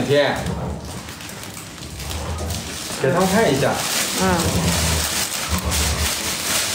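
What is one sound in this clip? Dogs growl playfully as they tug and wrestle.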